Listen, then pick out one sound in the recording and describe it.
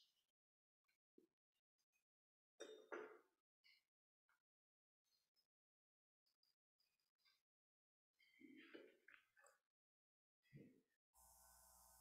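Small cups clink softly on a table.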